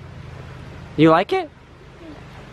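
A small boy speaks up in a high, excited voice close by.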